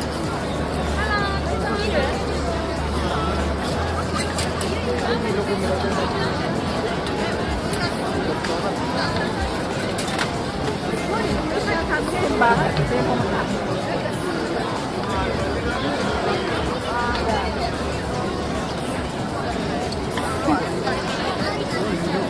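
A busy crowd murmurs and chatters outdoors.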